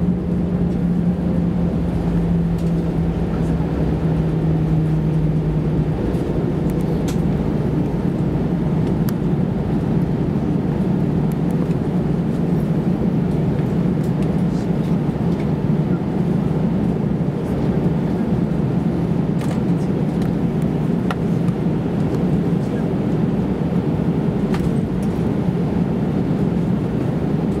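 A jet airliner's engines rumble and hum steadily.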